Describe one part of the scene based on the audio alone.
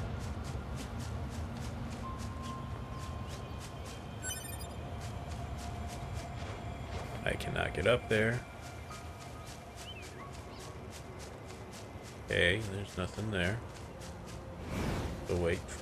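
Footsteps run quickly over grass and rock.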